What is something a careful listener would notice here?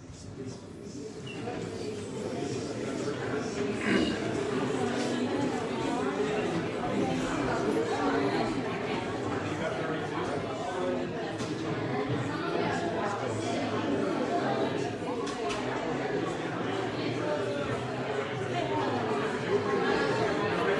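A crowd of men and women chat and greet each other all at once.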